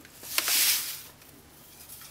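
Dry grains pour from a cup into a pot with a soft rushing hiss.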